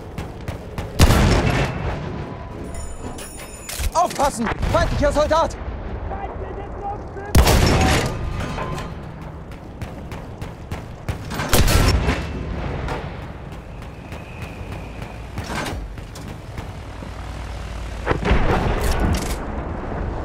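Explosions boom heavily in the distance.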